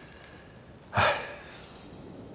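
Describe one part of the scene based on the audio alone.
A man groans briefly.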